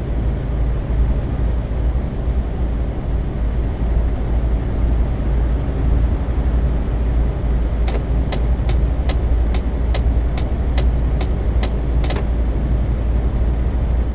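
A truck engine drones steadily in a low rumble.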